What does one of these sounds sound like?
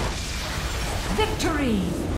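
A game victory chime rings out with a rising fanfare.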